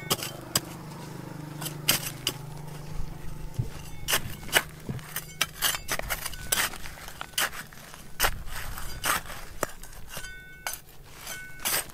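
A metal trowel scrapes and digs into stony soil.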